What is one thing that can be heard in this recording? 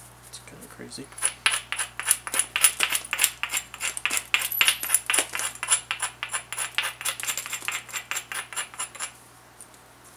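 A hand stone scrapes rapidly along the edge of a flint blade.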